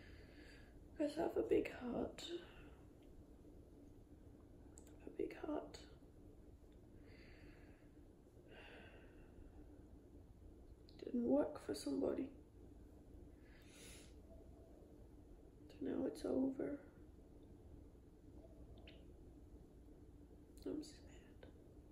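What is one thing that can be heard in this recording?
A young woman speaks softly and close by in short phrases.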